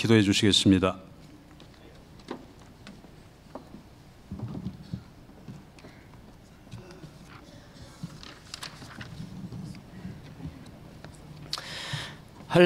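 A large audience murmurs quietly.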